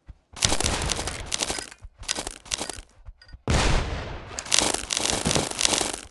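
Wooden crates crack and break apart under pickaxe blows.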